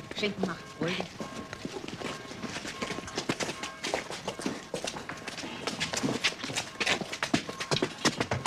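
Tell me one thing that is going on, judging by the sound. Footsteps scuff and tap on hard ground.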